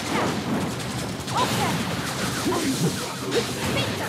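A loud blast booms and crackles.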